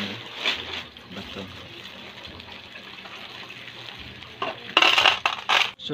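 A plastic bag of aquarium pebbles rustles and rattles.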